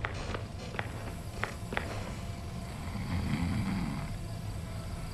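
A machine hums low and steadily.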